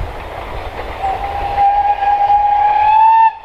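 A steam locomotive whistle blows long and steady, rising slightly.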